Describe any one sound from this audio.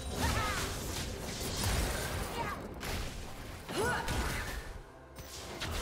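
Fantasy battle sound effects whoosh, zap and clash in quick bursts.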